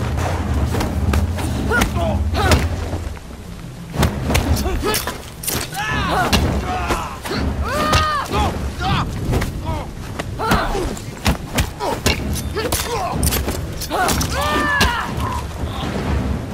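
Fists and blows thud in a fast brawl.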